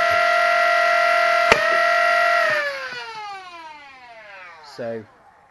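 A power tool whines loudly and steadily, then winds down and fades.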